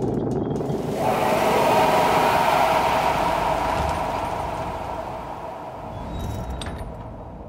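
A creature lets out a loud, harsh screech that slowly fades.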